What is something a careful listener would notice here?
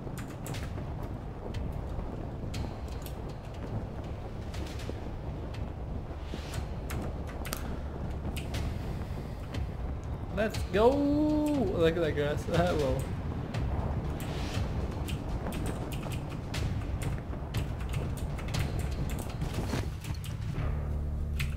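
Wind rushes steadily past a parachute during a descent.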